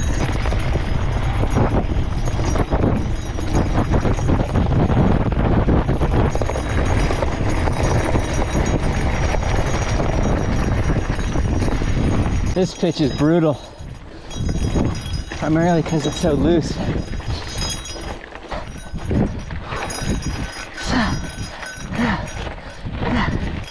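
Bicycle tyres crunch and rattle over loose gravel.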